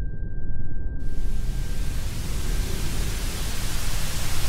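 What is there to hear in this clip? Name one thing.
Loud static hisses and crackles.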